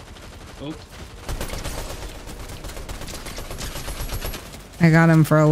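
Gunshots fire rapidly in quick bursts.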